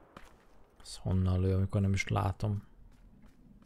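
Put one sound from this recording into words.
A man speaks loudly and with animation into a microphone.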